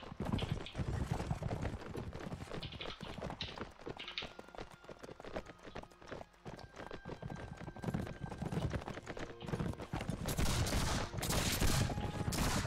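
Many armoured soldiers tramp along on foot, their gear clinking.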